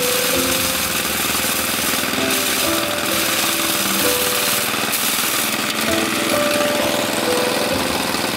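A pedal-driven threshing drum whirs and rattles steadily.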